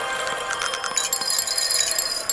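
Bright chimes ring out as a level is completed.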